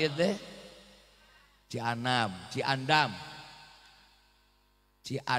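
A man speaks loudly and with animation into a microphone, his voice echoing in an open space.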